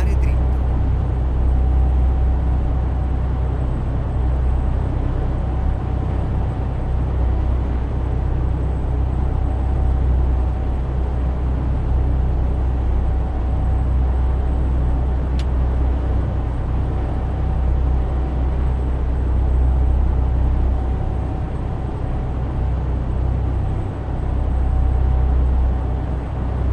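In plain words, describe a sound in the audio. Tyres hum on a road.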